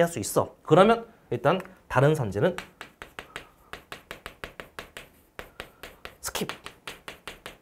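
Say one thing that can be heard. A man speaks with animation, close to a microphone.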